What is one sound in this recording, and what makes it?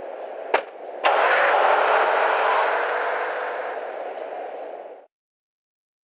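A car engine roars and drives away, fading.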